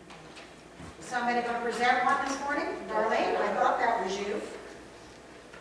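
An older woman sings in an echoing room.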